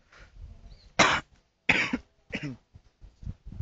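A young child speaks in short, loud bursts close by.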